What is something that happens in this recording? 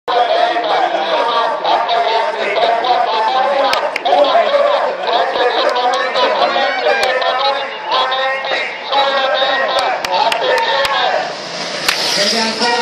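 People in a crowd talk along the roadside.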